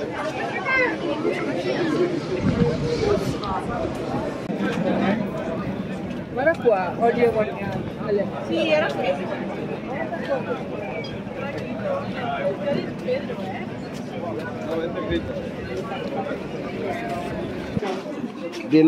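A middle-aged man talks calmly up close.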